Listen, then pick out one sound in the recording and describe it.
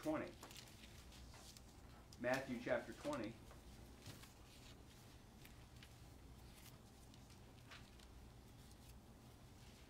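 Pages of a book rustle as they are turned.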